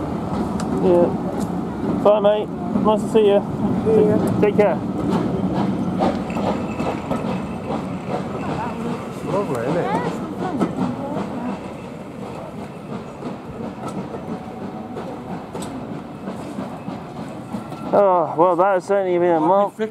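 Railway carriages rumble slowly past.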